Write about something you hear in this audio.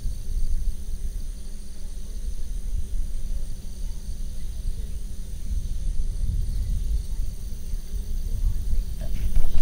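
Wind blows steadily across an open field, rumbling on the microphone.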